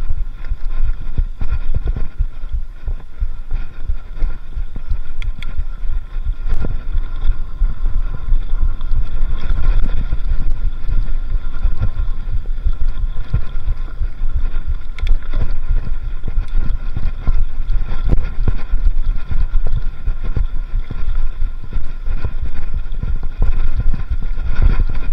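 A bicycle's chain and frame clatter over bumps.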